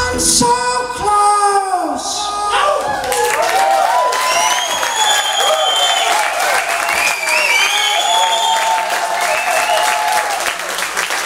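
A live rock band plays electric guitars in a large echoing room.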